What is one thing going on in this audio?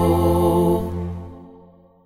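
A man sings into a microphone, ending a song.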